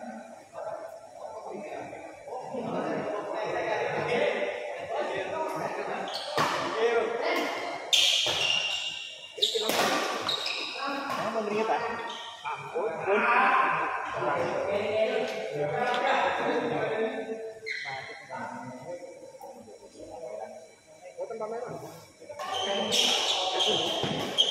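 Spectators talk and cheer loudly in an echoing hall.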